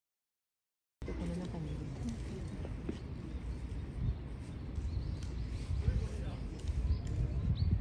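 A panda crunches and chews bamboo nearby.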